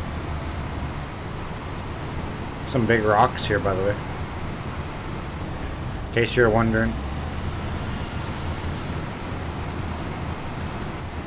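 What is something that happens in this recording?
A truck engine rumbles low and steady.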